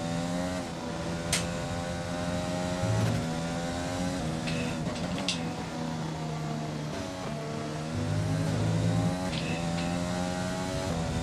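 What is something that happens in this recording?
A racing car engine whines steadily, its pitch rising and falling as it shifts gears.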